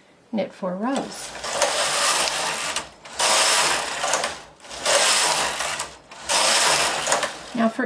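A knitting machine carriage slides back and forth across the needle bed with a loud, rushing clatter.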